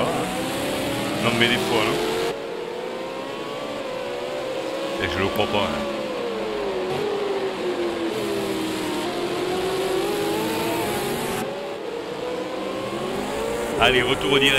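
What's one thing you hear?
Racing car engines roar past, rising and falling in pitch.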